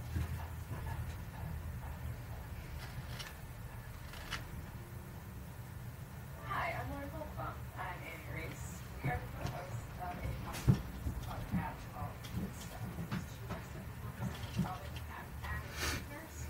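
Small items click and rustle in a man's hands.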